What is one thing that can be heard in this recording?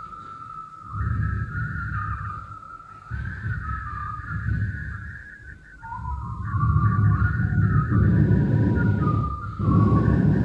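An elderly man speaks into a microphone, heard through loudspeakers.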